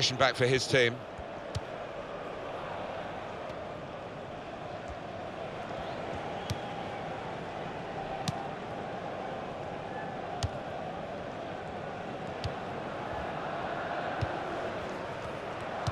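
A stadium crowd murmurs.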